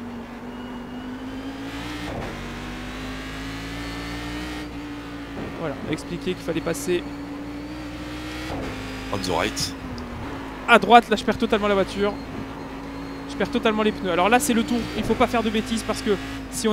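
A race car engine drones steadily, its pitch shifting as gears change.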